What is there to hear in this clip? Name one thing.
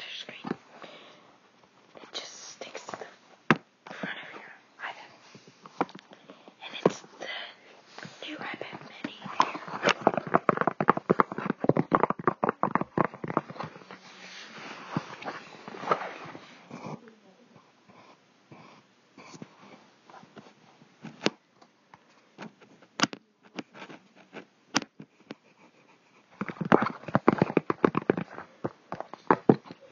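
A paper or plastic wrapper rustles and crinkles close by.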